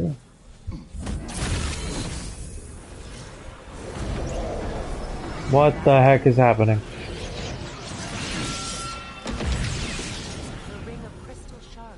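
A bright magical beam hums and roars steadily.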